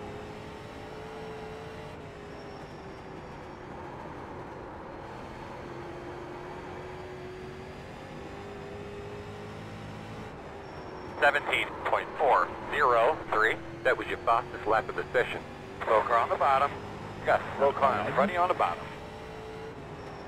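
A race car engine drones steadily, its pitch rising and falling slightly.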